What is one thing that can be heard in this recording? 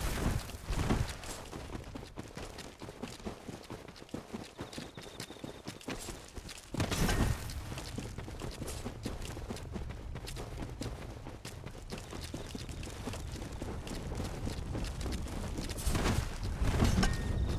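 Armoured footsteps clank and thud quickly over the ground.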